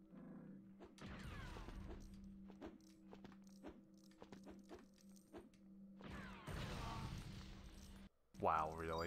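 An explosion bursts with scattering debris.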